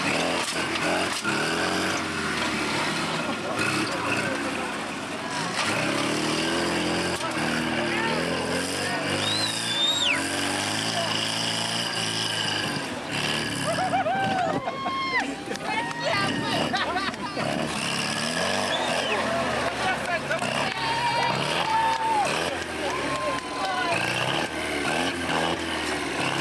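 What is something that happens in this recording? An engine revs and labours close by.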